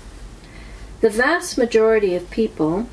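An older woman speaks calmly and close by.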